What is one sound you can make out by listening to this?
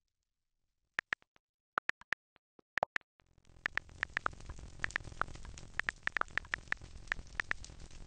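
Soft keyboard taps click in quick bursts.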